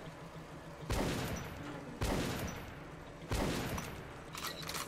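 A shotgun fires loud booming shots in an echoing room.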